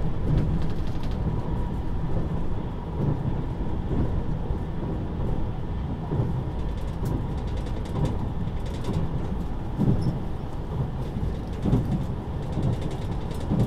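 Train wheels clack over rail joints at regular intervals.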